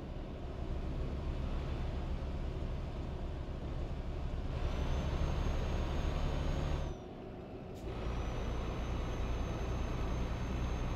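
A truck engine drones steadily at speed.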